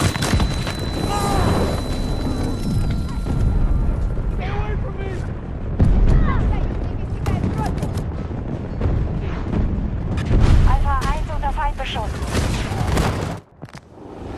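Distant explosions rumble and crackle.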